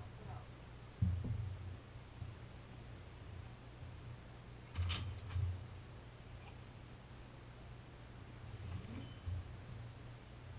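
A wooden boat hull knocks and bumps.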